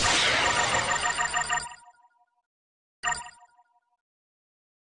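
Bright game chimes ring out with a sparkling effect.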